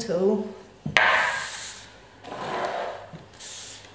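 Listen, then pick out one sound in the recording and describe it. A board scrapes and knocks on a hard surface.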